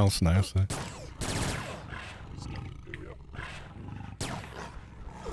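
Large beasts growl and roar in a fight.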